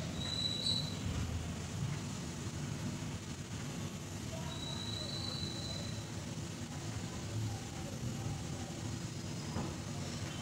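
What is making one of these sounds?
A pencil scratches softly along a ruler on paper.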